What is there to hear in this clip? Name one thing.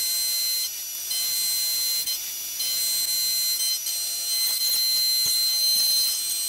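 A milling machine whines steadily as its cutter spins.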